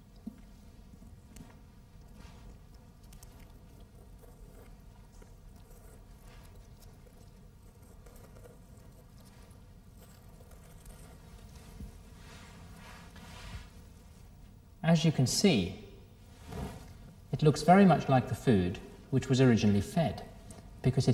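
Wet tissue squelches softly as hands pull it open.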